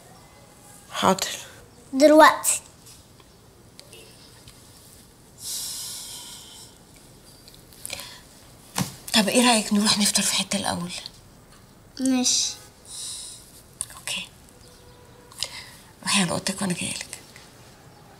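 A woman speaks quietly and with emotion, close by.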